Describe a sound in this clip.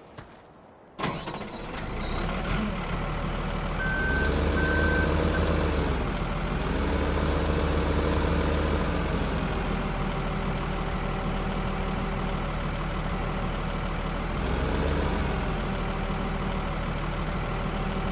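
A heavy engine rumbles steadily and revs up and down.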